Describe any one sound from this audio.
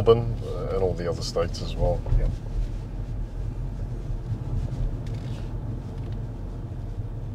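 A car's tyres rumble low and steadily on the road.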